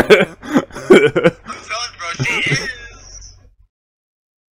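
A young man laughs loudly into a close microphone.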